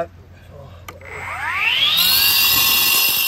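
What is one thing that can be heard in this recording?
A power saw whirs up to speed with a rising whine.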